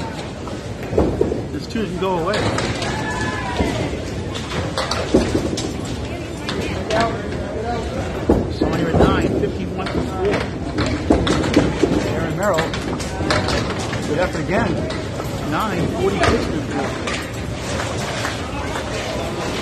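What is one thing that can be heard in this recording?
Pins crash and clatter as balls strike them.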